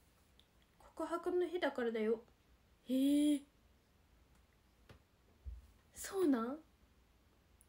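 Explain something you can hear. A young woman speaks softly and close by, in short bursts with pauses.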